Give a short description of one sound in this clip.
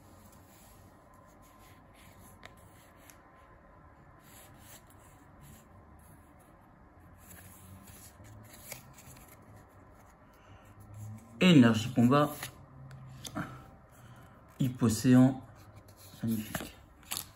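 Playing cards rustle softly as they are shuffled through by hand.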